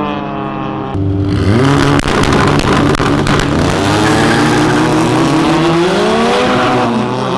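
Car engines rev loudly nearby.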